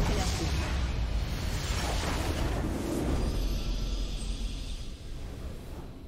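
Magical blasts and explosions crash loudly in a chaotic battle.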